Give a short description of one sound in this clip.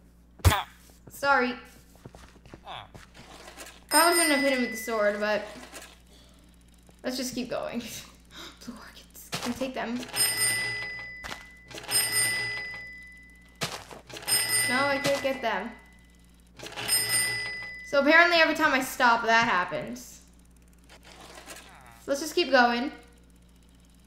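A girl talks with animation into a close microphone.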